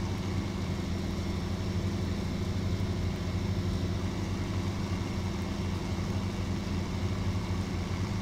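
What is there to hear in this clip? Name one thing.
A tractor engine rumbles steadily at a low, even pitch.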